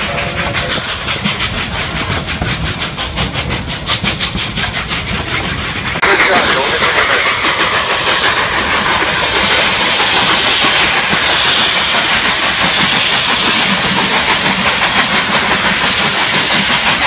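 Train wheels clatter on the rails close by.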